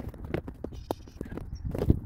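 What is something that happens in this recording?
Footsteps scuff on a paved path outdoors.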